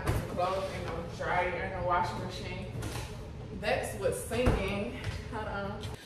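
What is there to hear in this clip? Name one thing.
A refrigerator door opens and shuts.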